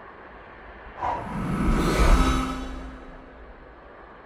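A magical spell shimmers and whooshes briefly.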